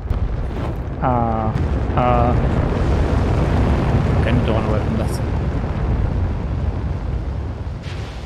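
An explosion bursts with a deep roar and rumbles away.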